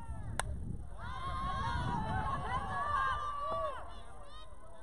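Young players shout and cheer.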